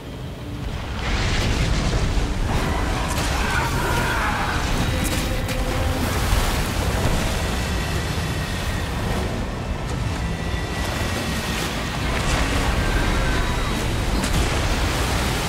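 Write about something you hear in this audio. Water churns and splashes heavily.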